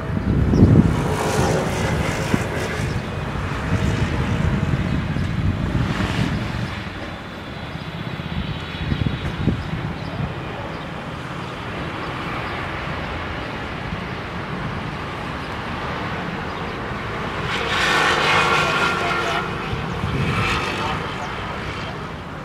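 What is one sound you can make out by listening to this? A jet airliner roars low overhead as it comes in to land.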